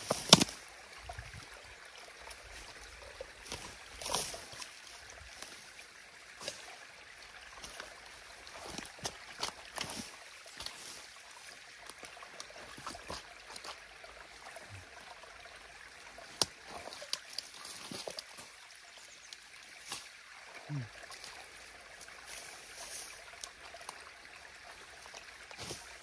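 A rake scrapes and rustles through wet grass and mud.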